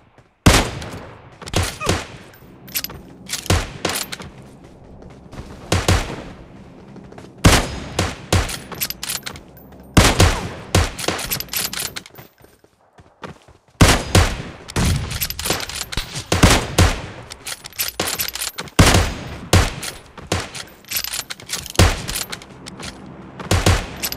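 Rifle shots crack.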